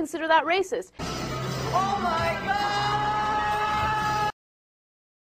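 A young man cries out in shock.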